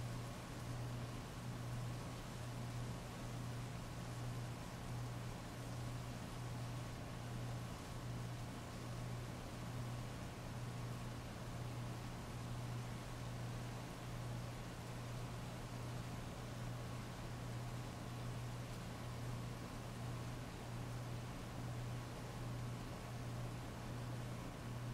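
Heavy rain pours steadily onto wet pavement.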